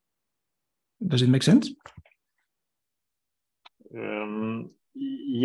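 A man speaks calmly into a microphone over an online call, with pauses.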